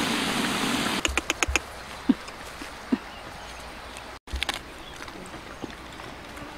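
Dogs crunch and chew food.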